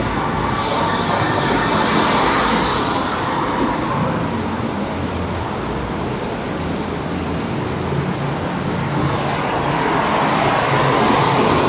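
Traffic rumbles steadily along a nearby street outdoors.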